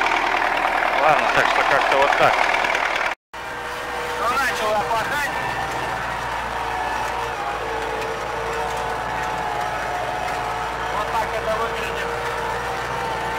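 A tractor engine rumbles and hums steadily close by.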